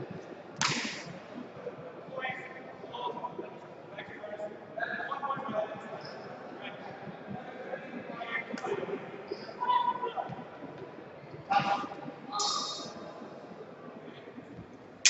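Several people talk in a large echoing hall.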